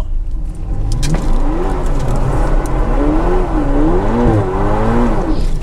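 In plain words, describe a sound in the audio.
A car engine revs up loudly, its pitch rising and falling.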